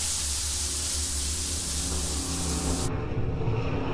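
Water from a shower sprays and splashes.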